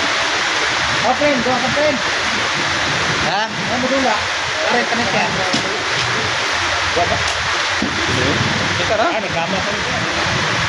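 Young children talk nearby.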